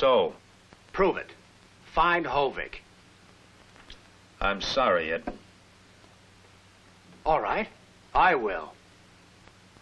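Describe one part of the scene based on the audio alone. A second man answers calmly nearby.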